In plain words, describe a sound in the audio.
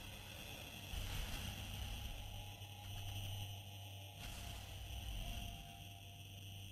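A loud rushing whoosh swells and fades.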